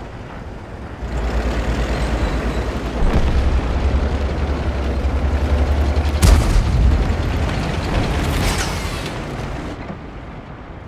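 A tank engine rumbles deeply and grows louder.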